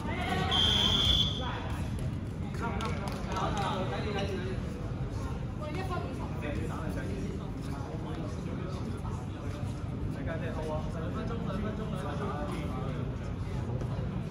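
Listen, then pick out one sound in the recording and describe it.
Balls bounce and thud on a hard floor.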